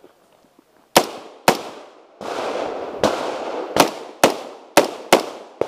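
An AR-15 rifle fires rapid shots outdoors, each crack echoing.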